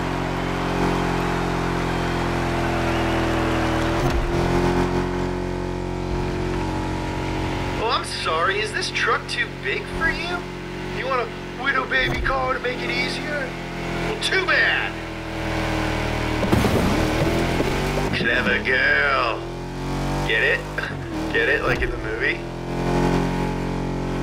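A truck engine drones and revs steadily.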